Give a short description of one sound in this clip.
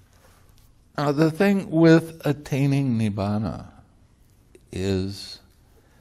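An elderly man speaks calmly close to a microphone.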